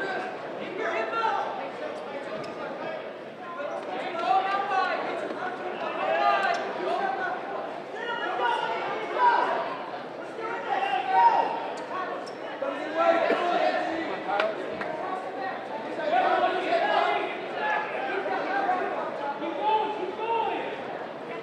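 Men shout loudly and excitedly in a large echoing hall.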